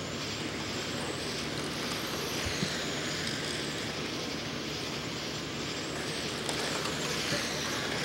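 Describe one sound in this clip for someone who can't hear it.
Small electric motors whine loudly as model cars race around outdoors.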